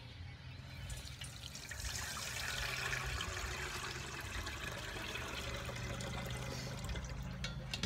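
Liquid pours and splashes through a strainer into a pot.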